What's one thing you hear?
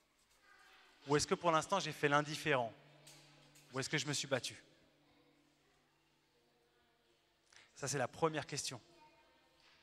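A young man speaks calmly into a microphone, heard through a loudspeaker in a large echoing hall.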